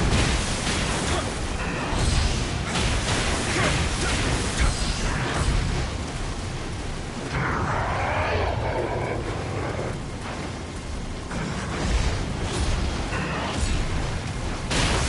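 Rain pours steadily.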